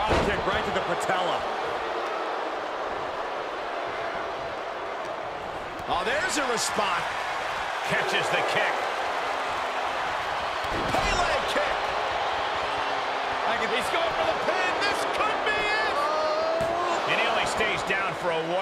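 A large crowd roars and cheers.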